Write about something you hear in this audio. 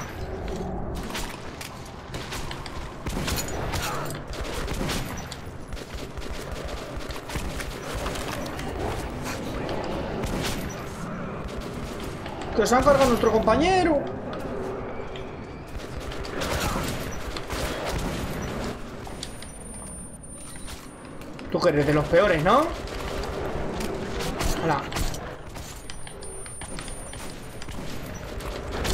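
Gunshots crack again and again.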